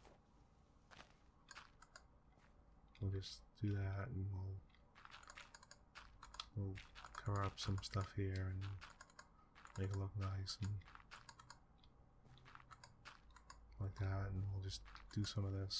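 Dirt blocks crunch as they are dug out.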